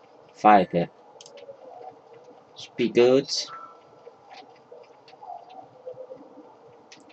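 Footsteps patter softly on the ground.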